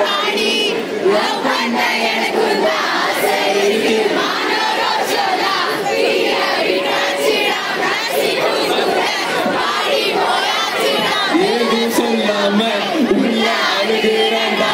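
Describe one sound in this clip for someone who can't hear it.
A large crowd of young people cheers and sings along loudly outdoors.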